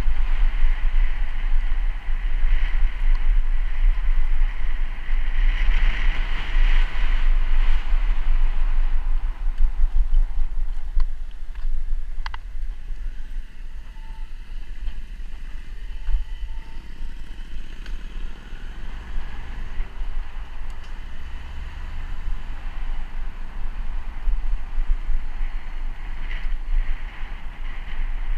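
Bicycle tyres roll over pavement and asphalt.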